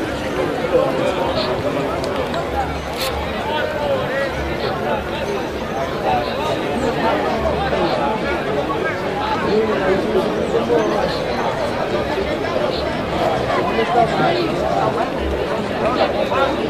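Rugby players shout to each other on the field.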